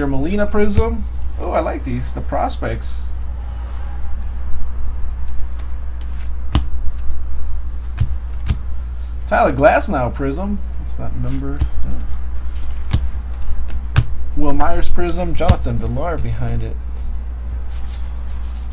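Trading cards rustle and click as hands flip through them.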